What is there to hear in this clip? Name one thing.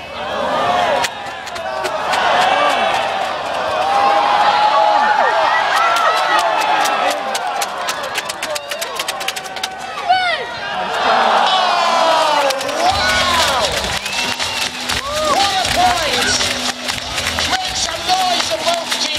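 Many people clap their hands in applause.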